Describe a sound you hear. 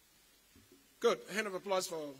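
Another man begins speaking into a microphone, heard over loudspeakers.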